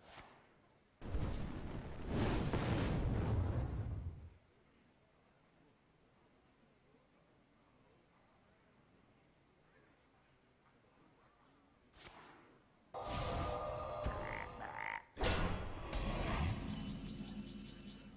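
Fantasy game sound effects whoosh, rumble and chime.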